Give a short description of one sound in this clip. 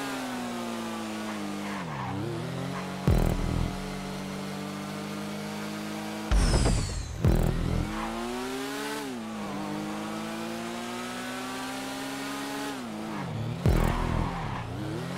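A motorcycle engine drones steadily, its pitch dropping and climbing again every few seconds as it shifts gear.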